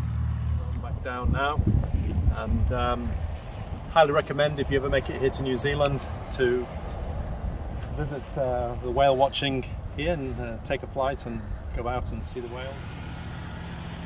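A middle-aged man speaks calmly and close by, outdoors.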